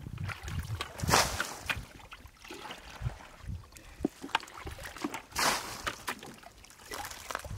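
Water splashes and sloshes as a metal bucket scoops through shallow muddy water.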